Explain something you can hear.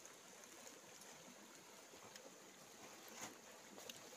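Dried fish rustle as a hand spreads them.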